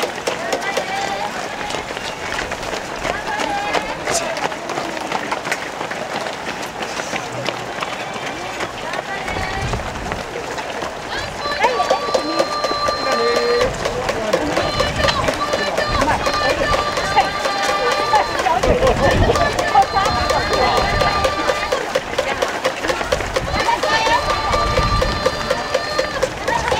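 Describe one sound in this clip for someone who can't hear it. Many runners' footsteps patter on a road outdoors.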